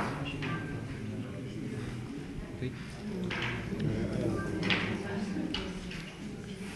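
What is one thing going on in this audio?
A middle-aged man speaks calmly and close by, heard through a microphone.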